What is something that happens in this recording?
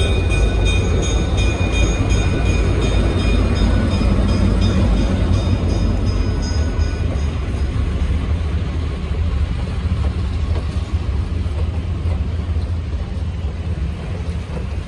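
Passenger train cars rumble past close by on the rails.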